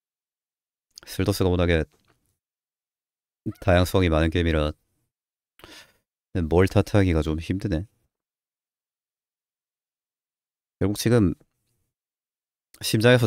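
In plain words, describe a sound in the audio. A young man talks with animation in short bursts, close to a microphone.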